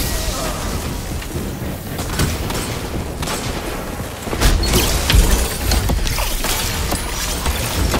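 Crackling electric blasts from a video game burst out.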